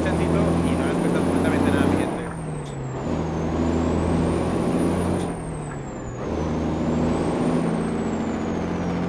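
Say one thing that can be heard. A truck engine drones steadily, dipping and rising in pitch as gears change.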